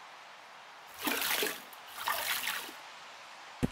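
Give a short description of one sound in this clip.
Dirt pours into a plastic bucket with a rough rush.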